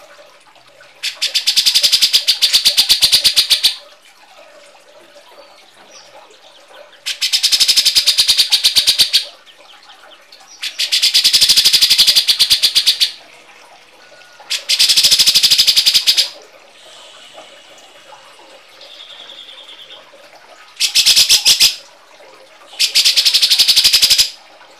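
A bird gives loud, harsh, rapid rattling calls in bursts of a few seconds, with short quiet pauses between them.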